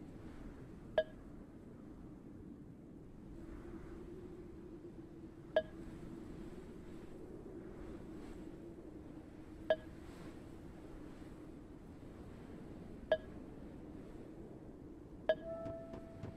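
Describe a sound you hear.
A short soft chime sounds now and then, as in a game menu.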